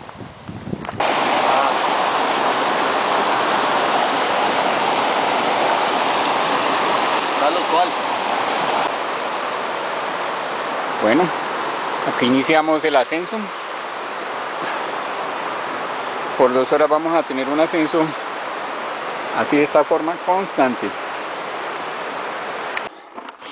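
A stream rushes and splashes over rocks close by.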